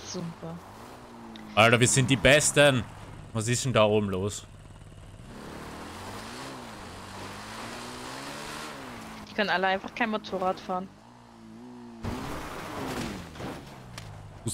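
A motorbike engine hums and revs.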